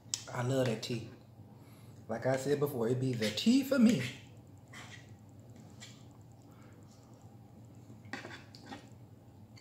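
A knife and fork clink on a plate.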